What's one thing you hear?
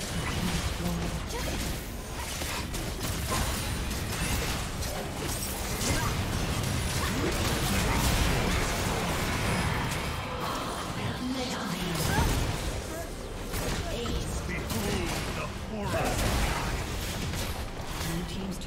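Weapons clash and strike repeatedly in a game fight.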